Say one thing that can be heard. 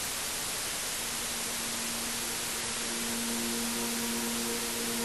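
An electric guitar plays notes.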